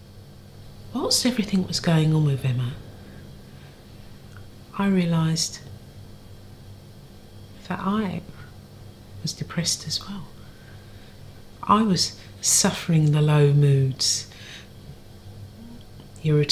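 An elderly woman speaks slowly and with emotion, close by.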